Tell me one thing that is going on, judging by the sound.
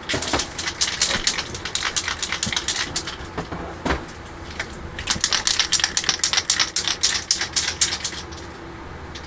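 A spray can is shaken hard, its ball rattling quickly.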